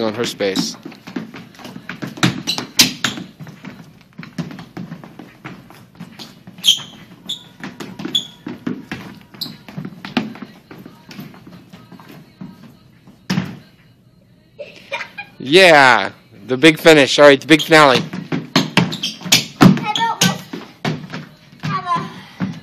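Children's shoes tap and scuff quickly on a wooden floor.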